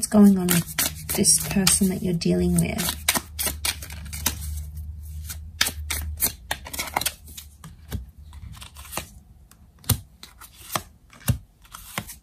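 Playing cards slide and rustle against one another.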